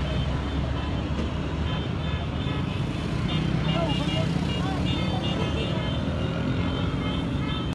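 Many motorcycle engines rumble steadily as a long procession rides past.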